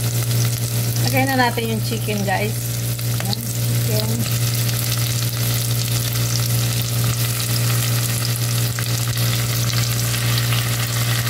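Food sizzles and crackles in a hot pot.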